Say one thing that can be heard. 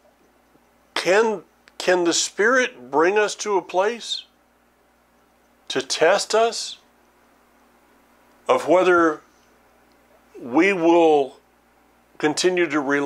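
An older man speaks calmly and earnestly into a close microphone, with pauses.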